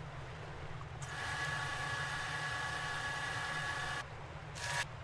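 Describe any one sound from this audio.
A videotape whirs loudly as it rewinds at high speed.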